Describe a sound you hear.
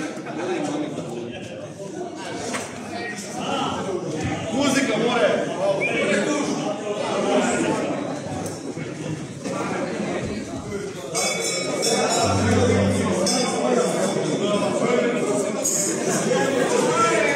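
A group of men and women chatter and talk in a hall that echoes.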